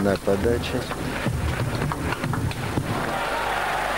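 A table tennis ball clicks as it bounces on a table and off a paddle.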